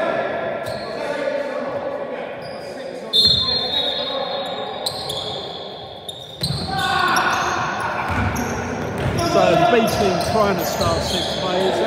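Men call out to each other during a basketball game.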